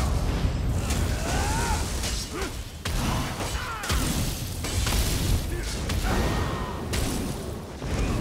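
Weapons clash and thud in a fast fight.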